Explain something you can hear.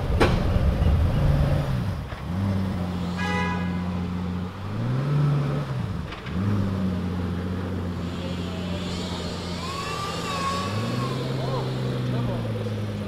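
A supercar engine revs up sharply and drops back.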